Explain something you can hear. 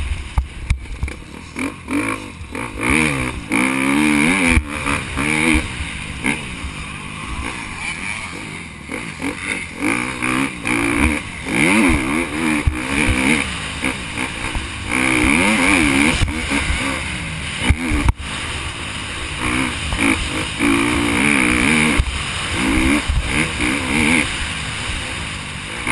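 A dirt bike engine revs hard, rising and falling in pitch.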